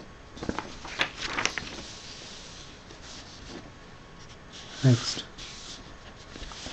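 Paper rustles as a sheet is moved.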